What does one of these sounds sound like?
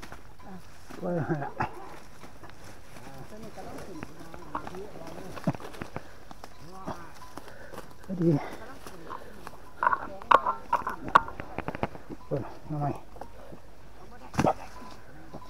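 Footsteps crunch on dry leaves and stalks.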